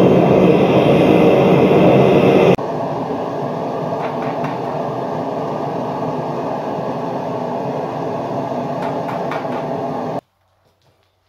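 A gas furnace roars loudly and steadily.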